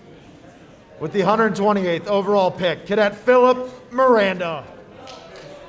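A man reads out loudly in an echoing hall.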